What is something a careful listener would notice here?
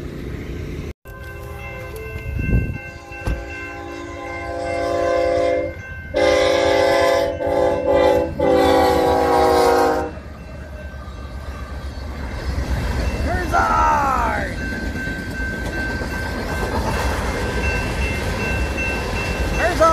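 A crossing bell rings steadily.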